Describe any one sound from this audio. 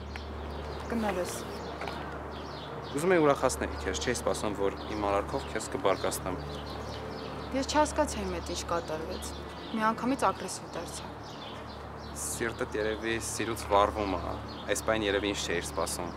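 A young man talks calmly close by, outdoors.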